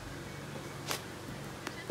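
A hand slaps down onto a foam exercise mat.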